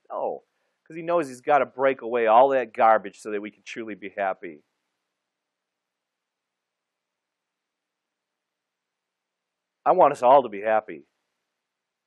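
A man speaks calmly and warmly into a microphone, with pauses.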